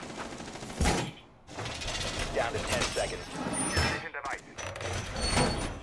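Hands and feet clank on metal ladder rungs.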